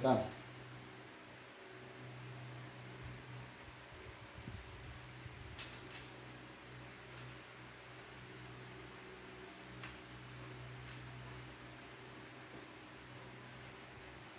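Metal parts clink softly.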